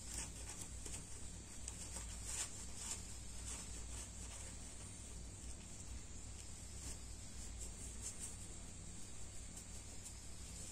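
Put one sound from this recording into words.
Hands fold and rustle a small piece of fabric.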